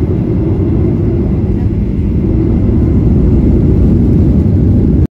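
A jet engine roars steadily as an airliner taxis.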